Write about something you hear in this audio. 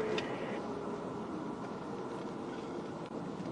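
Heavy trucks roar by.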